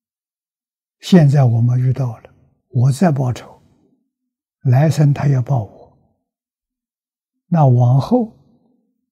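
An elderly man speaks calmly and slowly into a close microphone, in short phrases.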